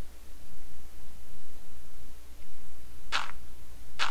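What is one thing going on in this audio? A block is set down with a soft thud.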